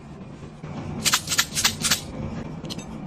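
Sugar sprinkles rattle as a plastic jar is shaken.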